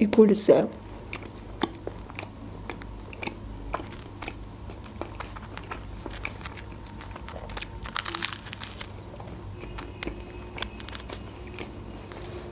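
A young woman chews crunchy food close to a microphone, with wet smacking sounds.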